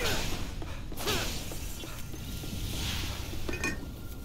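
A magical energy blast crackles and whooshes.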